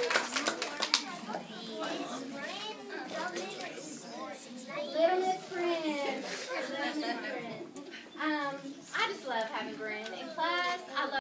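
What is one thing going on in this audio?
Children and adults chatter and murmur nearby.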